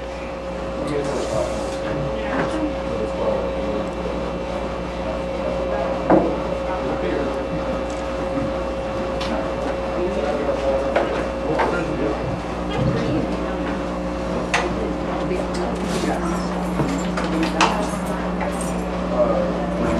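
A drummer hits drums and cymbals.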